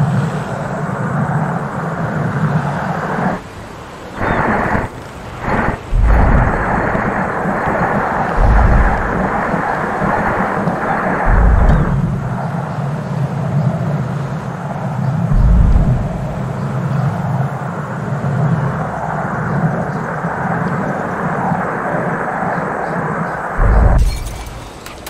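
A glass bowl rolls and rumbles over pavement.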